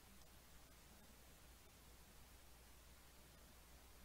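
A finger taps on a console's buttons.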